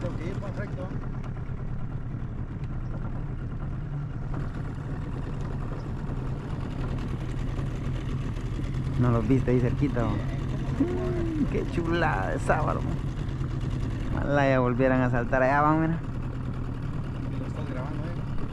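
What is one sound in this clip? Water splashes along a boat's hull.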